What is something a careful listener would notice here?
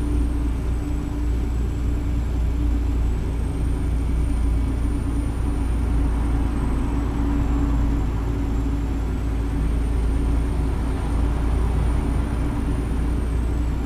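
Tyres roll on a motorway with a steady road noise.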